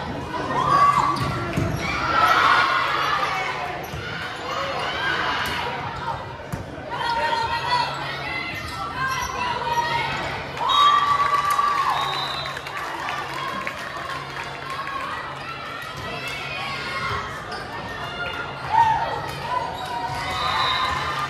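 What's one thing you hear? Girls' voices call out and chatter in a large echoing gym.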